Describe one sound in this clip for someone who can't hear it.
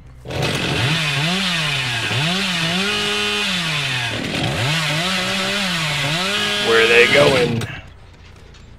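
A chainsaw engine revs up and down loudly, then cuts off.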